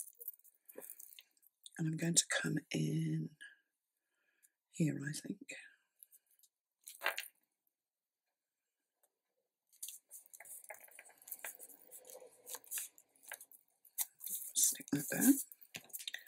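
Paper rustles and scrapes softly as hands handle it.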